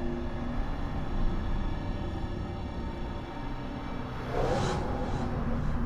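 A deep magical whoosh rushes and swirls.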